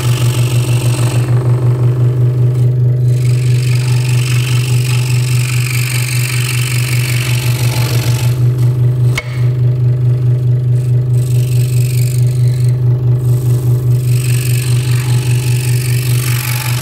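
A scroll saw hums and chatters rapidly as it runs close by.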